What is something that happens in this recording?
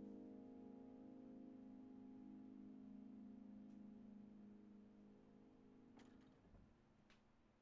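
A piano chord rings out and slowly fades away.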